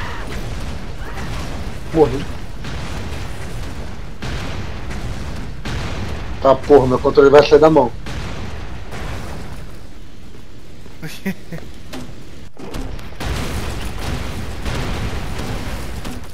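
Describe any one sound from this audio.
Gunfire rattles in a video game.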